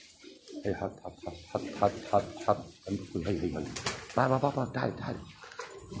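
A pigeon's wings flap as it flies overhead.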